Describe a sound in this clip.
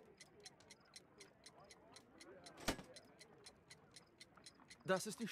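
A clock ticks quickly and steadily.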